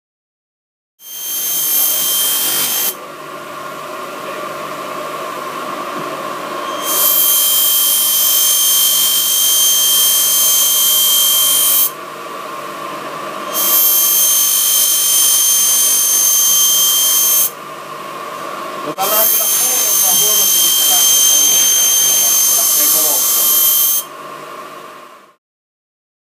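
A bench grinder motor hums steadily.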